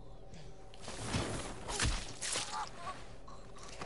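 Heavy thuds and scuffling break out in a short struggle.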